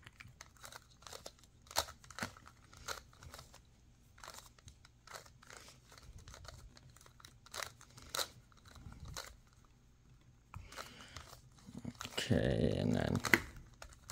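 Plastic puzzle cube pieces click and clack as they are turned quickly.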